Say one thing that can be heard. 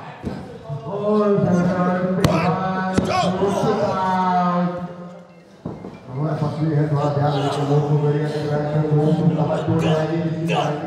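A man cries out loudly in pain nearby.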